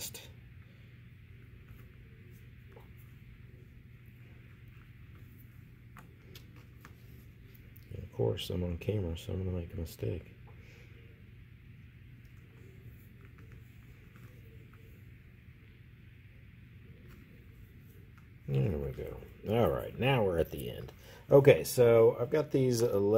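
A cord rustles softly as it is pulled through a knot.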